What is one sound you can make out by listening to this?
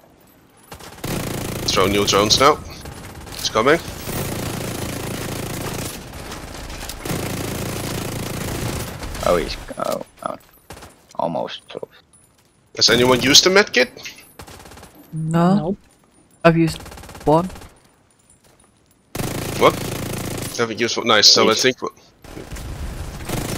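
Rifle shots fire in bursts.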